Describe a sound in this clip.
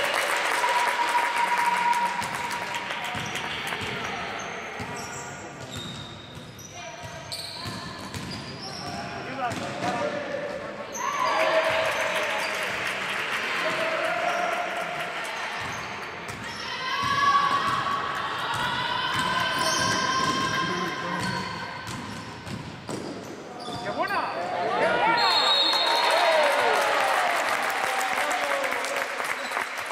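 Young women players shout and call out to each other.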